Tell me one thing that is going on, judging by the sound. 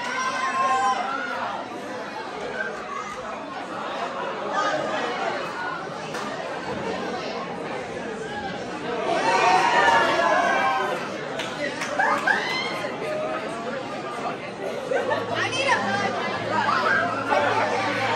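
A large crowd of young men and women chatters and laughs loudly in a big echoing hall.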